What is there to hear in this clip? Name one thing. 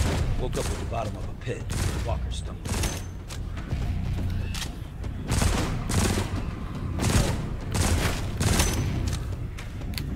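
A pistol fires shots in quick succession.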